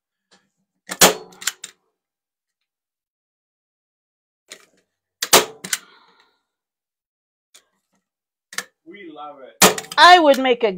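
A staple gun snaps sharply a few times.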